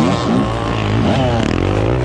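Another dirt bike revs close by.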